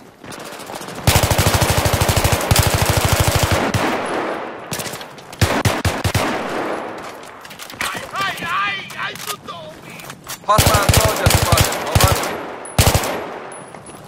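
Rapid gunfire bursts loudly and echoes.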